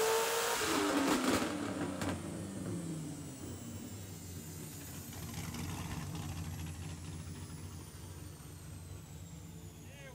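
A car engine settles to a low, rumbling idle.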